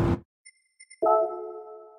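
A game menu gives a short chime.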